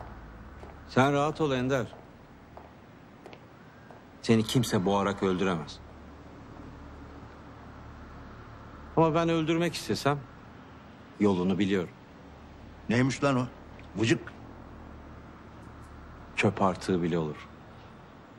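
A middle-aged man speaks in a low, tense voice close by, in short bursts with pauses.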